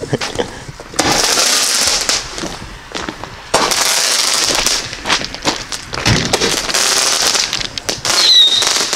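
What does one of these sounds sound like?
A firework fountain hisses and crackles as it sprays sparks.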